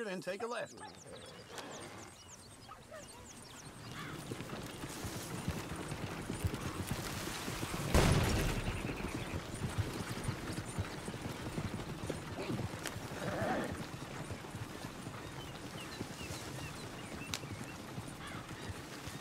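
Horse hooves clop steadily on the ground.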